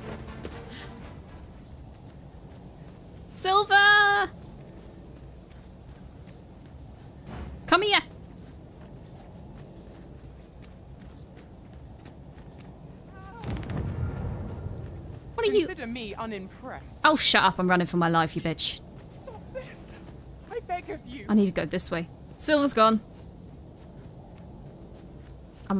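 Footsteps patter softly on grass and dirt.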